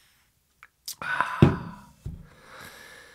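A bottle is set down on a table with a thud.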